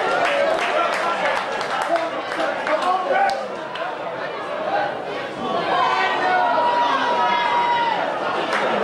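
Players shout to one another on the field.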